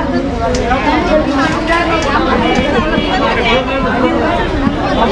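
A large crowd of men and women chatter and call out loudly outdoors.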